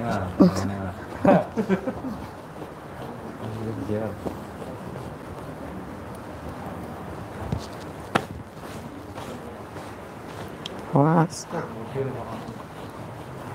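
Several people talk quietly nearby.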